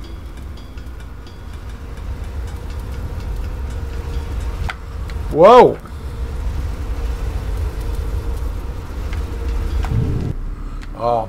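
Molten metal pours from a ladle with a low roar.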